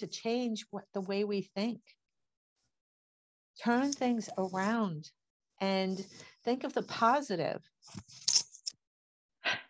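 An elderly woman talks with animation over an online call.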